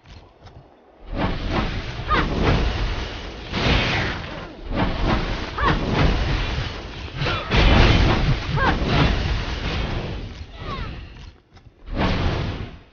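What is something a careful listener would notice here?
Magic blasts whoosh and boom during a fight.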